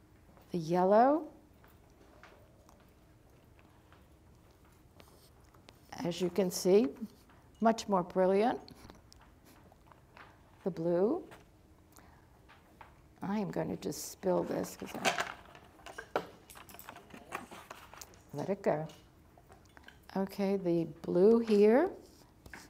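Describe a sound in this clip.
An elderly woman speaks calmly and clearly, close to a microphone, with pauses between phrases.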